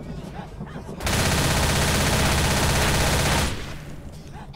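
An automatic rifle fires in a rapid burst.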